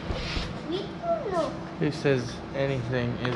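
A small child's high voice calls out.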